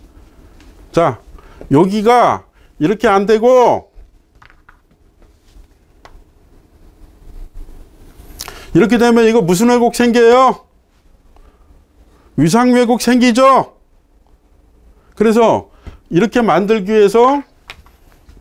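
A middle-aged man speaks animatedly into a close microphone, in short bursts with pauses.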